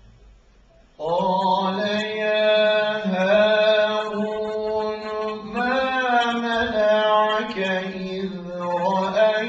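A man sings loudly into a microphone in long, wavering notes.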